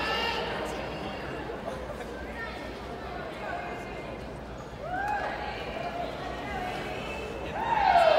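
A crowd of young women cheers and shouts in a large echoing hall.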